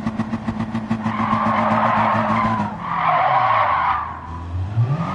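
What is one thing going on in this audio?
Tyres screech loudly in a skid.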